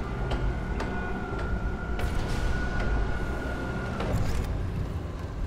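Heavy boots clank slowly on a metal floor.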